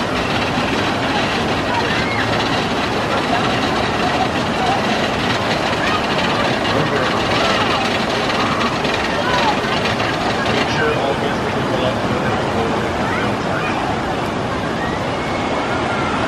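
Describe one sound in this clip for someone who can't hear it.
Riders on a raft shout and scream faintly with excitement.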